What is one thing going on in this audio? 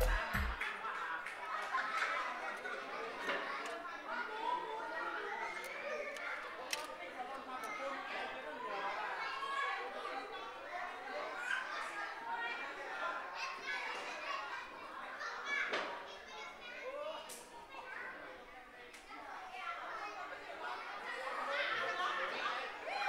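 A crowd of adults and children chatter throughout.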